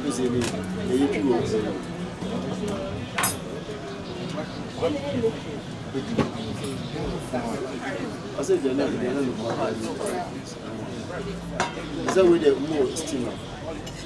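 Metal cutlery clinks against a plate.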